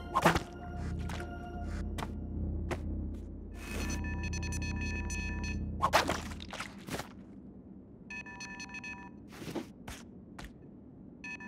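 Video game sound effects whoosh and pop.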